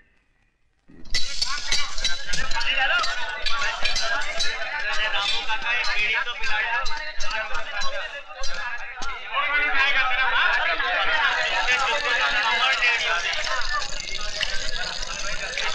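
Many men chatter loudly outdoors.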